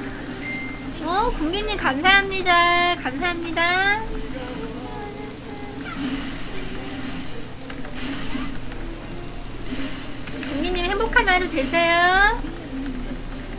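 A young woman talks close to a microphone in a high, animated voice.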